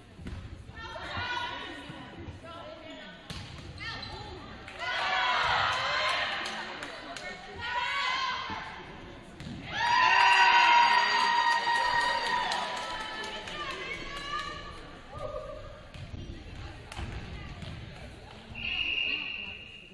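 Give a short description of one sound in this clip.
Young women players shout and call out across an echoing gym.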